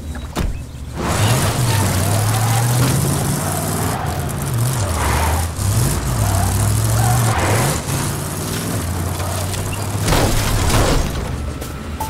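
A truck engine roars and revs as it drives.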